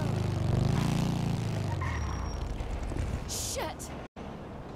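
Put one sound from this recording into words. A motorcycle engine rumbles nearby and then dies down.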